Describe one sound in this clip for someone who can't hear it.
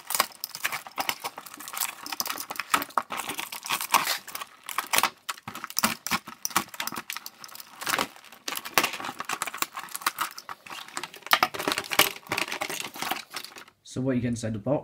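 A blade slices through tape and cardboard with crackling scrapes.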